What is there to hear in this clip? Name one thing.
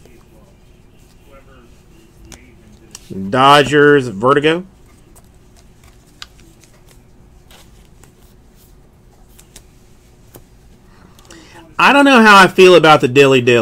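Trading cards softly rustle and click as they are shuffled by hand.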